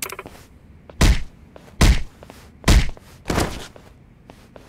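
Heavy punches land with loud thuds in a fight.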